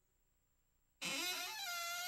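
A door creaks slowly open.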